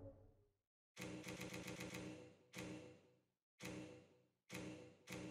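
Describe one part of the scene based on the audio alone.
Short electronic chimes sound as a menu is scrolled.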